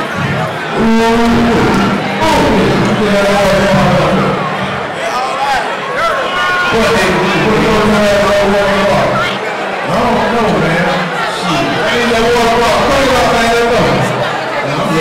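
Hip-hop music with a deep, steady bass beat plays loudly through loudspeakers.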